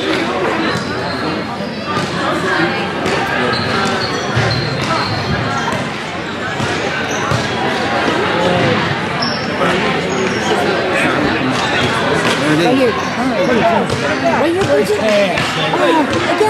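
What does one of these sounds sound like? Hockey sticks clack against a ball and each other.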